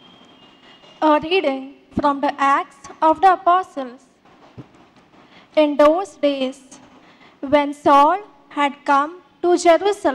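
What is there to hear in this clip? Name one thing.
A young woman reads aloud calmly into a microphone.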